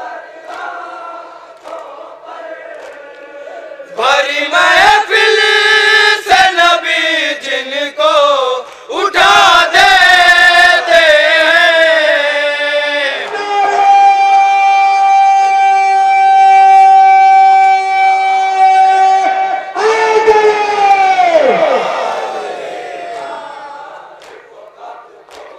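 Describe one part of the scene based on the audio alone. A young man sings a mournful lament loudly through a microphone and loudspeaker.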